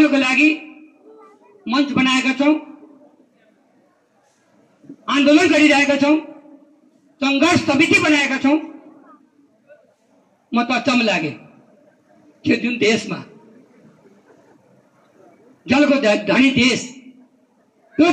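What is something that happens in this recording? A man speaks loudly and with animation through a microphone and loudspeakers, in short bursts with pauses.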